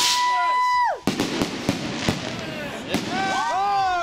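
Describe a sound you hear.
Fireworks pop and crackle in quick bursts.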